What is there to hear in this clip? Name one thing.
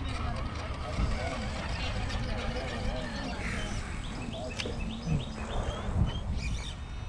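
Plastic wheels knock and scrape on wood.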